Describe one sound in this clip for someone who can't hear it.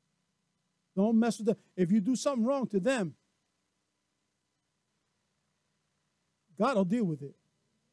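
A middle-aged man preaches with emphasis through a microphone.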